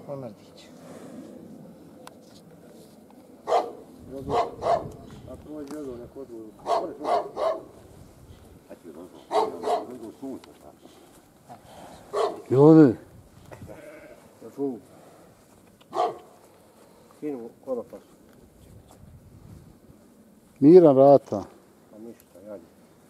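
A young man speaks in short bursts nearby.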